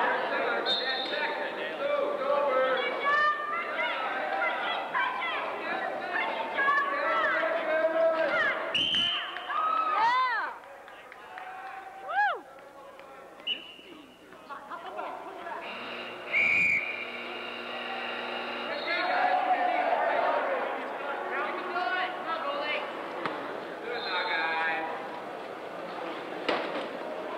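Players shout and call out to each other in a large echoing hall.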